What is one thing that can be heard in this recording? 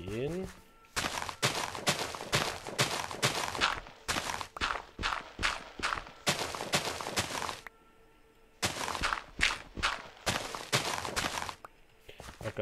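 Blocks of dirt crunch and break in quick repeated bursts.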